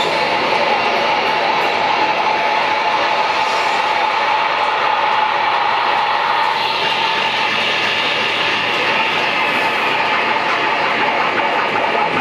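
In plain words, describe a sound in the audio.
A crowd cheers and shouts loudly in a large echoing room.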